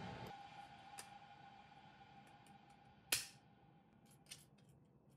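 Metal parts click and knock together as hands handle a metal panel.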